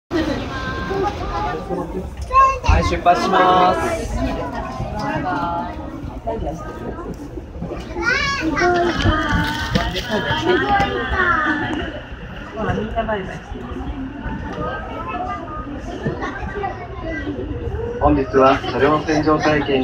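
A train rolls along the tracks with a low, steady rumble.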